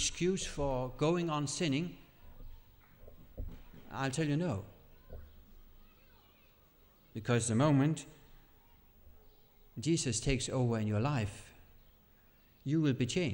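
A middle-aged man speaks calmly and clearly, close to a microphone, with short pauses.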